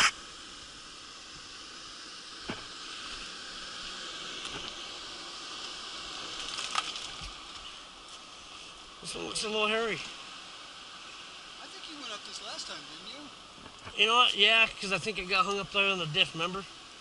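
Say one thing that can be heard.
An off-road vehicle's engine revs as it climbs over rocks.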